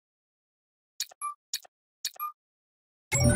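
A game timer counts down with short electronic beeps.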